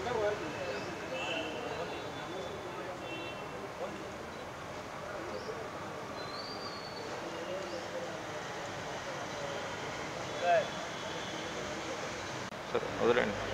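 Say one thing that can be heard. A man talks quietly outdoors.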